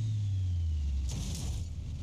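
A car crashes with a loud crunch of metal.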